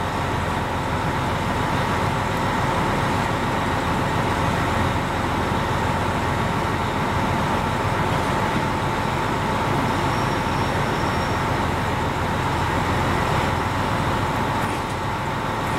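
An electric train rumbles slowly into a station.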